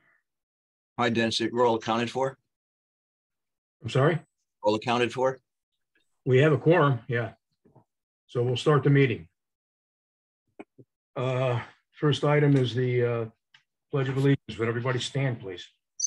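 An older man speaks calmly through an online call.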